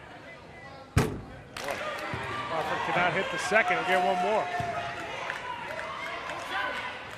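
Spectators in an echoing gym cheer and clap.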